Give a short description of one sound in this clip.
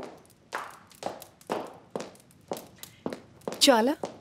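Footsteps click steadily on a hard floor.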